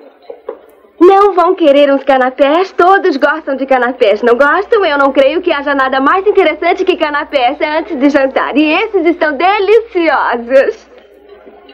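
A young woman sings brightly and cheerfully, close by.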